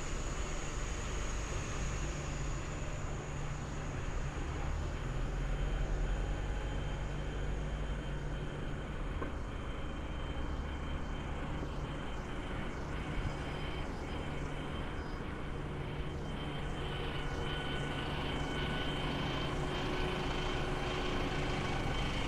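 Traffic rumbles along a city street outdoors.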